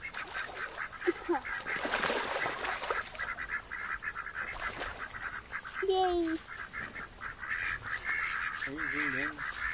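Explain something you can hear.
A duck gives short quacks.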